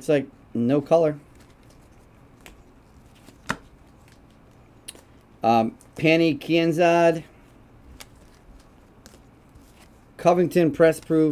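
Trading cards shuffle and flick softly.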